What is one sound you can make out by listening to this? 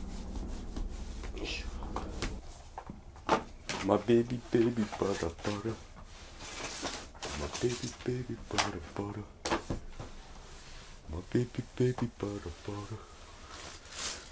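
Small plastic parts click and rattle in a man's hands.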